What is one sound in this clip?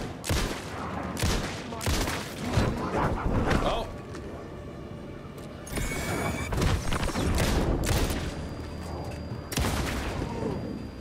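Gunshots fire in quick bursts, echoing in an enclosed space.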